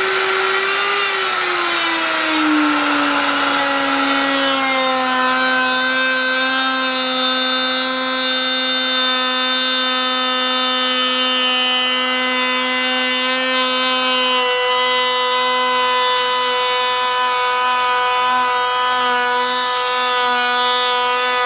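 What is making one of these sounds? A power router's pitch drops and settles lower as it cuts into wood.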